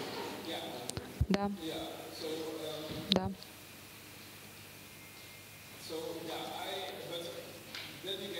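A middle-aged man speaks calmly into a microphone, heard through loudspeakers in a room.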